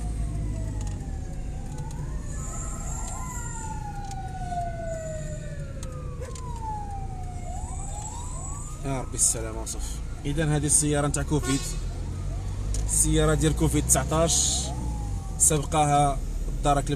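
A car engine hums steadily as the car drives along.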